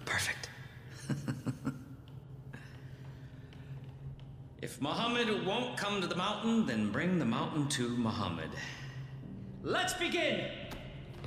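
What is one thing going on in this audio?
A man speaks theatrically and loudly in an echoing hall.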